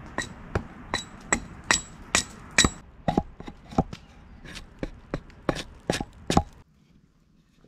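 A hatchet chops into a wooden stick.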